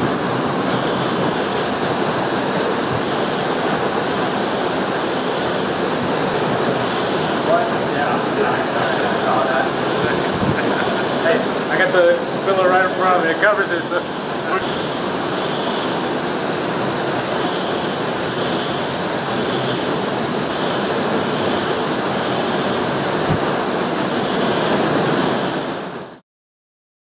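Heavy rain lashes down steadily.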